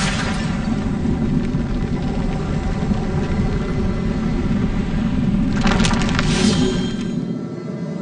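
A large mechanism grinds and rumbles as it rises.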